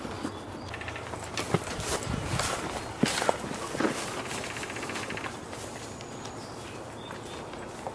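Footsteps tread through grass and dirt.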